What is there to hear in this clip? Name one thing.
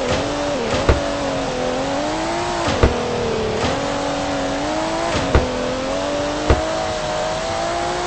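A car engine revs steadily, rising and dropping in pitch as gears shift.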